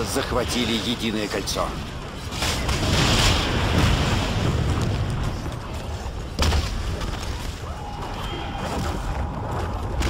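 A magic blast crackles and whooshes.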